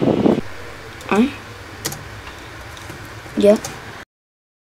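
A young boy speaks briefly nearby.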